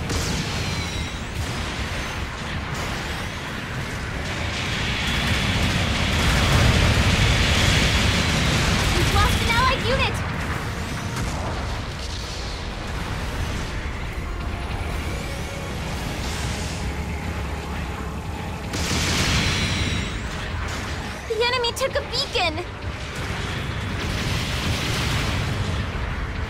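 Heavy robot footsteps thud.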